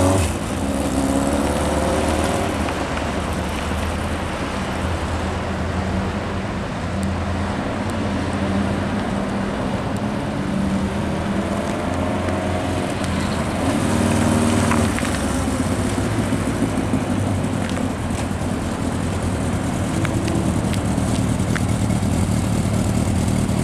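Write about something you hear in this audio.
A motorcycle engine rumbles at low speed.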